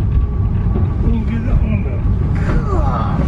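Wheels squeal against the rails on a curve.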